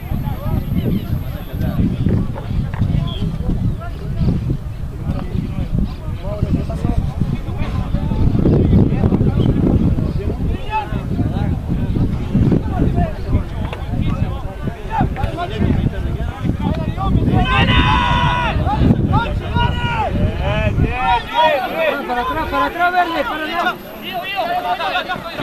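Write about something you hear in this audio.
Rugby players shout and call out to one another outdoors.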